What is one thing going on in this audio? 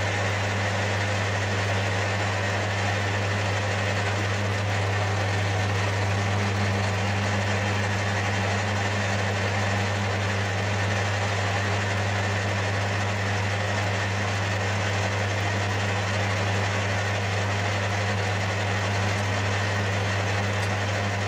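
Wood grinds against a spinning lathe spindle.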